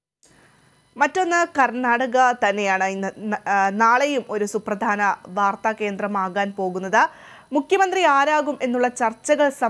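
A young woman reads the news clearly and steadily into a microphone.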